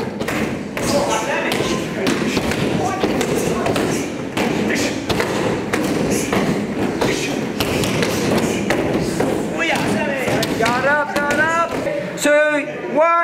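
Fists and feet thud rapidly against padded strike bags.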